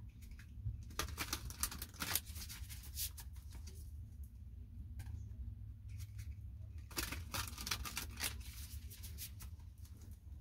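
Playing cards riffle and rustle as they are shuffled by hand.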